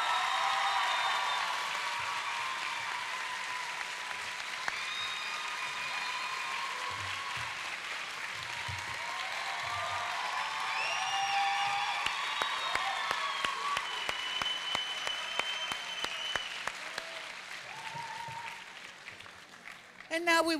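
A large crowd applauds in an echoing hall.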